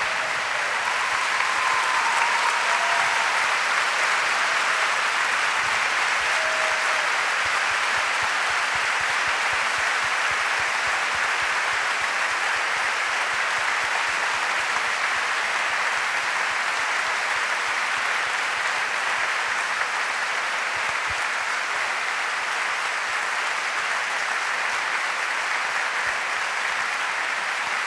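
A large crowd applauds loudly and steadily in a big echoing hall.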